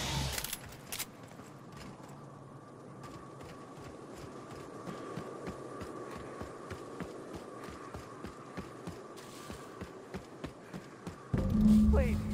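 Footsteps crunch steadily through grass.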